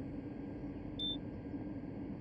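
A ticket validator gives a short beep.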